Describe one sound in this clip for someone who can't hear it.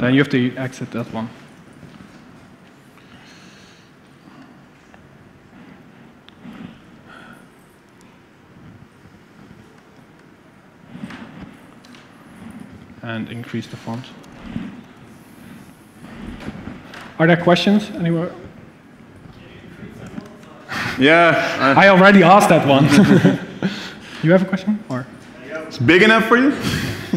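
A man speaks into a microphone in a large hall, with pauses.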